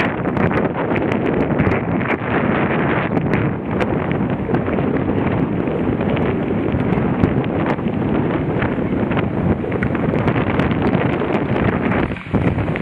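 Wind buffets the microphone steadily while moving outdoors.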